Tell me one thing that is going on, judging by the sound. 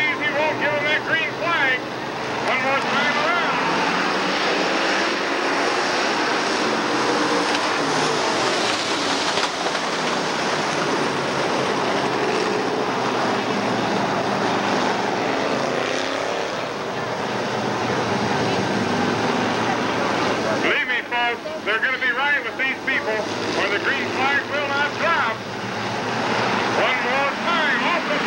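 Race car engines roar loudly as the cars speed around a dirt track.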